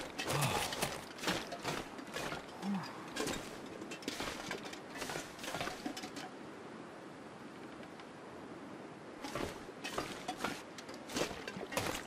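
Footsteps crunch and thud at a steady walking pace.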